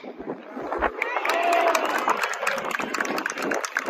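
A crowd cheers and shouts outdoors.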